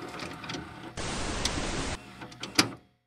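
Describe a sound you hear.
Television static hisses loudly.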